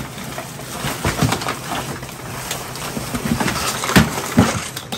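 Objects thump and knock as they are shifted about.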